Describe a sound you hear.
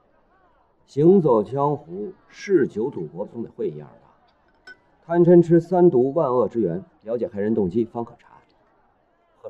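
A young man speaks calmly and earnestly.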